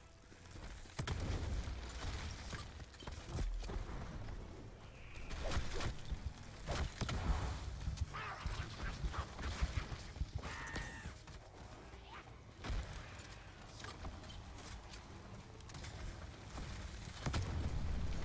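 Energy guns fire with crackling, zapping bursts.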